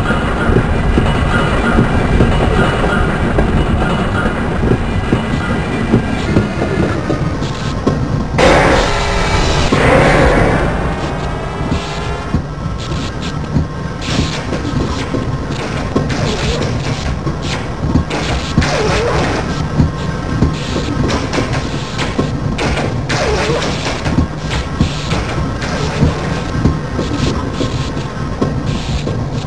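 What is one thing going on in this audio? A small rail car rumbles and clatters along tracks in an echoing tunnel.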